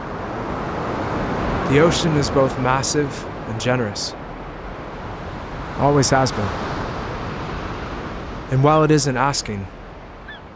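Ocean surf breaks and washes up a shore.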